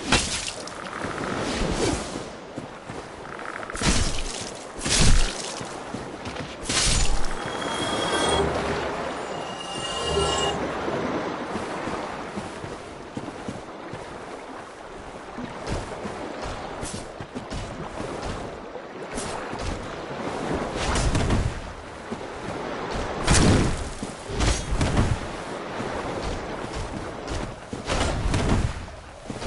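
Heavy weapon blows thud and clash.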